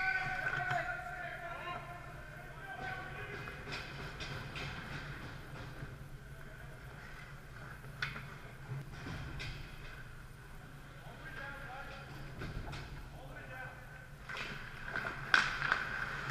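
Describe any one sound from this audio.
Hockey sticks clack against each other and the puck.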